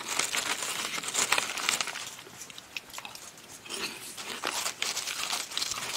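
Men crunch on snacks close to microphones.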